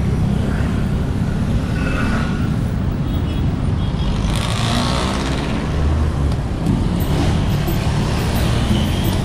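Motorcycle engines hum nearby in passing traffic.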